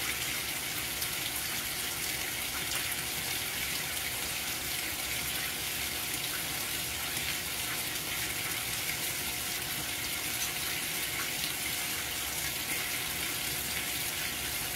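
Water streams and splashes steadily into a washing machine drum.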